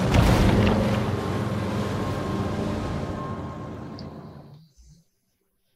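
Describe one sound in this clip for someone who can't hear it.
Water rushes and splashes loudly, then fades away.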